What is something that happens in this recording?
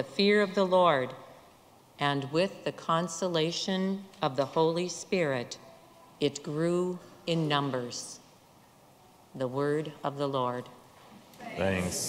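A woman speaks calmly into a microphone in a large echoing room.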